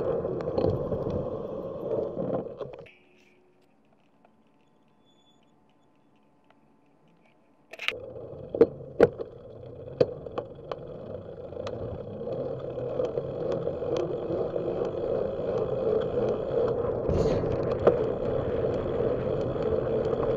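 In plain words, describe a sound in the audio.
Wind rushes past a moving bicycle, loud and buffeting.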